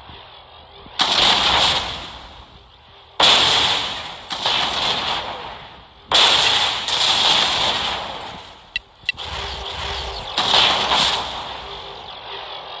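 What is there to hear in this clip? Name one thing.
Space weapons fire in loud, hissing bursts that swell and fade.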